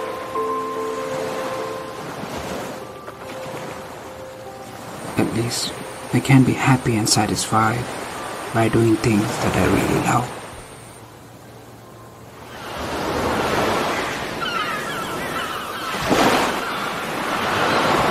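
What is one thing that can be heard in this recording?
Waves break and wash onto a sandy shore.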